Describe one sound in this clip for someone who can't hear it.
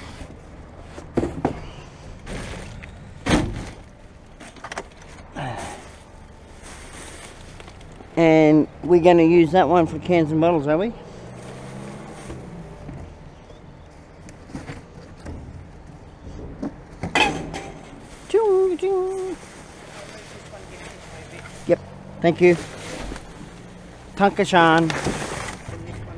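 Plastic bags rustle and crinkle as they are handled close by.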